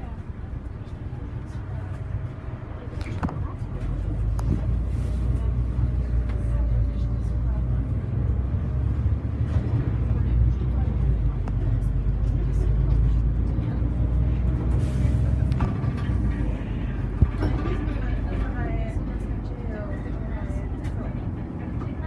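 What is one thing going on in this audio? A bus engine rumbles steadily from inside, rising as the bus picks up speed.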